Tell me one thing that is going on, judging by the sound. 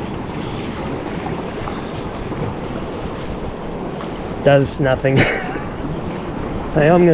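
Water laps and splashes against an inflatable boat.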